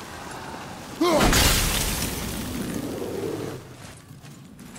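A cloud of gas bursts with a loud whoosh and slowly fades.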